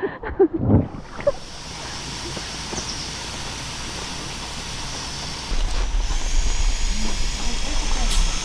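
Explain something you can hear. Air hisses out of an inflatable ring.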